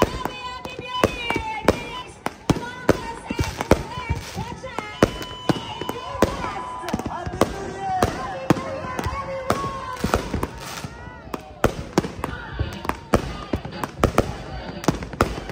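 Fireworks bang and boom loudly in rapid bursts.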